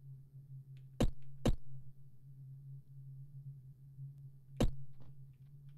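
Short clicks sound as a game menu is flipped through.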